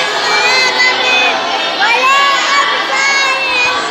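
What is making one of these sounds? A young boy recites aloud in a clear, sing-song voice, close by.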